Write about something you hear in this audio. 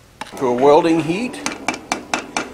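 A hammer strikes hot metal on an anvil.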